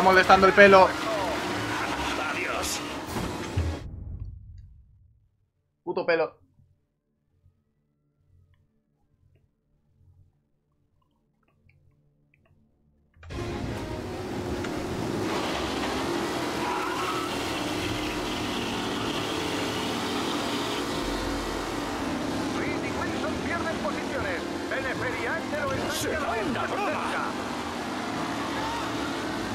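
Racing car engines roar and whine.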